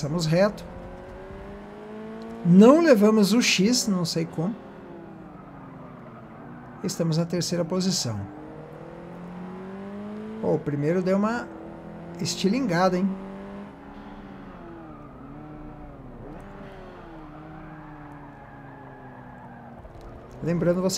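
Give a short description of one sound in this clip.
A car engine hums and revs up and down as gears shift.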